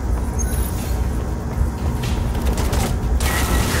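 Footsteps run on a metal floor.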